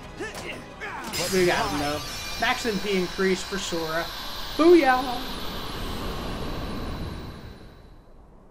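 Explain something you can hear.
A magic blast bursts with a bright shimmering ring that slowly fades.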